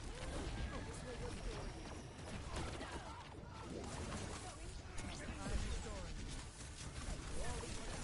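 An energy weapon fires in a video game.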